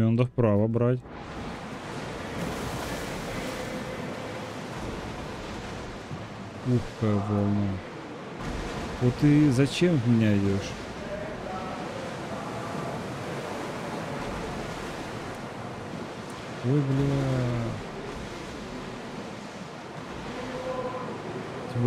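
Waves splash around a sailing ship.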